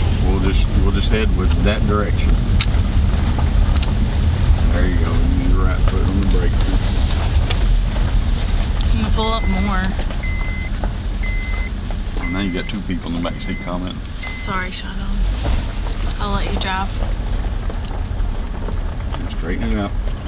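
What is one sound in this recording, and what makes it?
A car engine hums steadily with road rumble inside the car.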